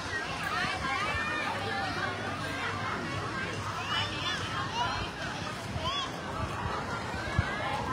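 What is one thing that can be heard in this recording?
A crowd of children and adults shouts and squeals at a distance, outdoors.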